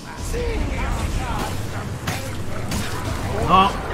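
A heavy weapon strikes a creature.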